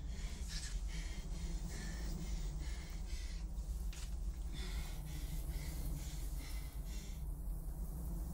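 A blanket rustles as it is spread over a bed.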